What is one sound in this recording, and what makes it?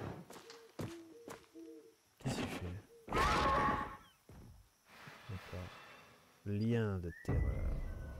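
A large beast growls and snarls.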